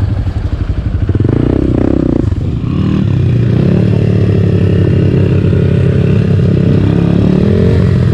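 Other dirt bike engines idle and rev nearby.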